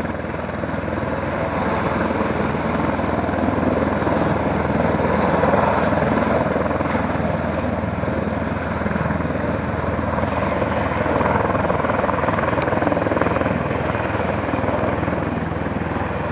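A helicopter flies low overhead with a loud, steady rotor thudding and engine roar.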